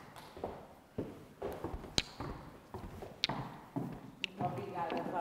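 High heels click on a hard floor.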